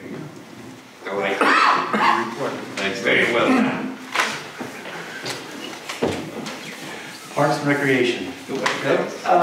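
A middle-aged man speaks calmly into a microphone, heard through a sound system in a room.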